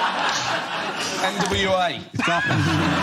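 A woman and men laugh loudly.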